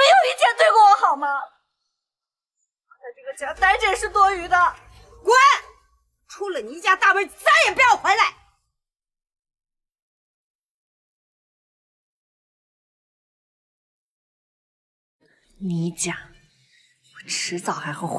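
A young woman shouts angrily close by.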